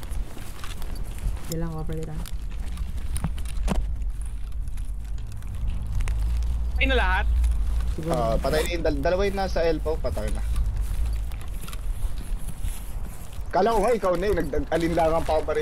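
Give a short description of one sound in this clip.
Footsteps rustle through grass and crunch on gravel.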